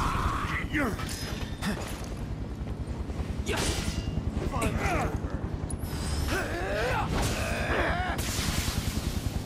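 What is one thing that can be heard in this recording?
A burst of crackling energy whooshes.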